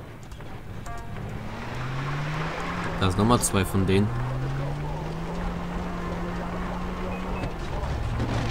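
A vehicle engine starts up and revs.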